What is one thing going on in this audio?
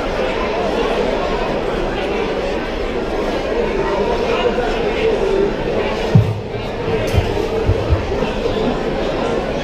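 A saxophone plays a melody.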